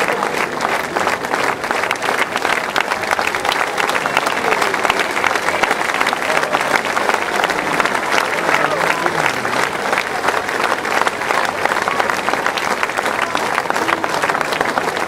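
A large audience claps and applauds steadily.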